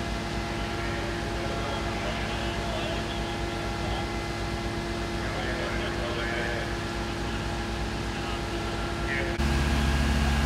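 Water sprays in a steady rushing stream from a fire hose.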